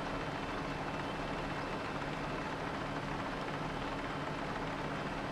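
A small mower engine hums steadily as it drives over grass.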